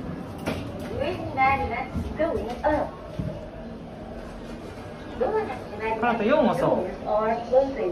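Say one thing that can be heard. A young child speaks and babbles excitedly nearby.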